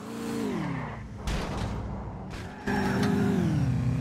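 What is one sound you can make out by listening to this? Tyres screech as cars swerve sharply.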